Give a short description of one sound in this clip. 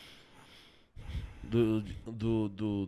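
A man speaks close to a microphone, with animation.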